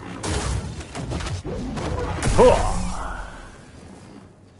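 Energy blades hum and clash in a fight.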